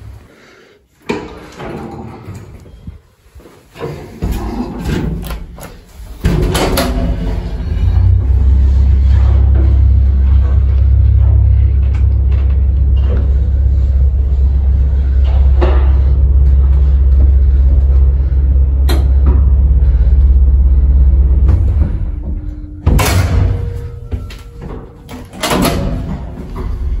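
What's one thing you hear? An elevator button clicks.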